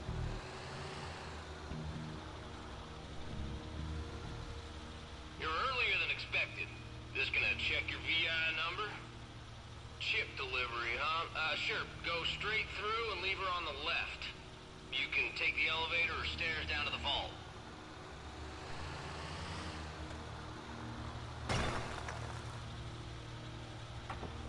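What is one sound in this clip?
A heavy truck engine hums steadily as the truck drives slowly.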